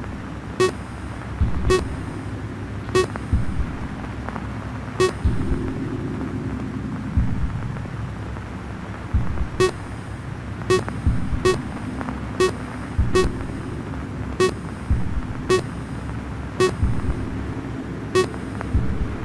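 A short electronic click sounds again and again.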